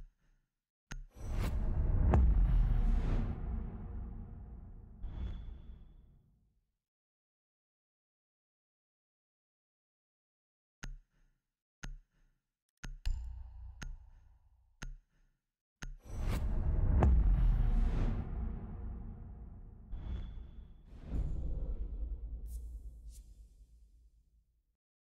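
A deep boom hits and rumbles as it slowly fades.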